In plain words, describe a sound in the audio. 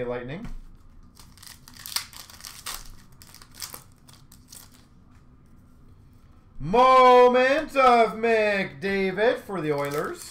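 Small card packs tap and rustle as a hand handles them.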